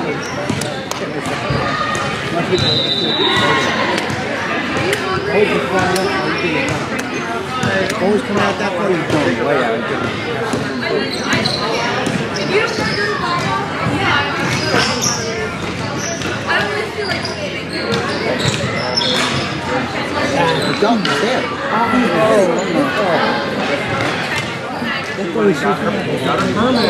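Young players shout and call out to each other, echoing in a large hall.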